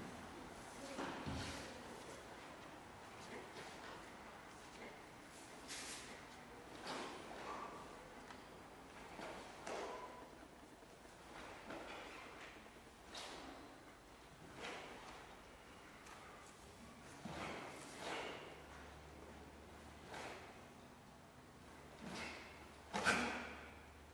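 Bare feet stamp and slide on a wooden floor.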